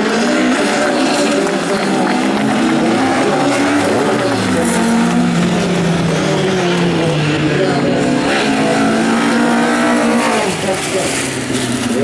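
Rally car engines roar and rev hard as the cars race past.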